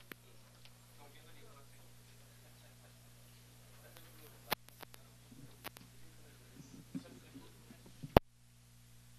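Men murmur quietly to each other nearby.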